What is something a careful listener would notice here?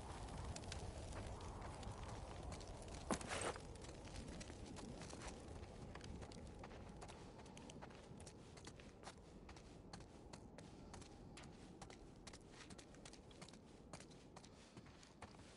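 Footsteps tap softly across a hard floor.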